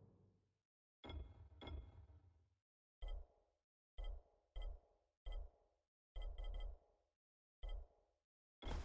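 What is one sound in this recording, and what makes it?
Short soft clicks sound as menu choices change.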